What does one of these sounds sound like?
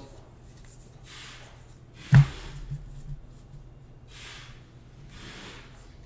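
Hands rustle and slide trading cards from a foil pack.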